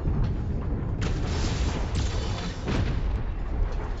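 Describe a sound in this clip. Heavy guns fire in a loud, rough burst.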